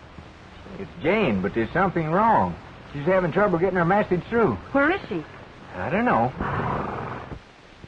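A man speaks urgently, close by.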